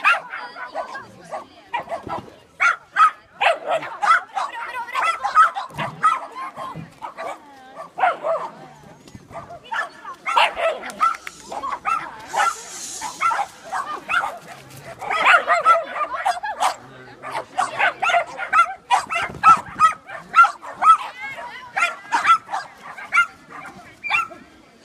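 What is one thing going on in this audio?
A woman calls out commands to a dog with animation, close by, outdoors.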